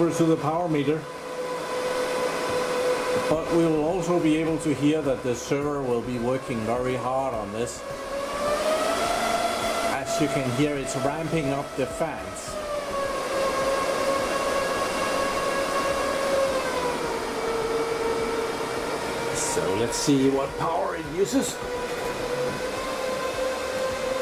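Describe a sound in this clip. A computer fan whirs steadily, its pitch slowly rising and falling.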